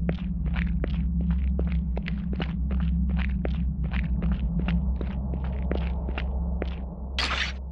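Footsteps crunch steadily over stony ground.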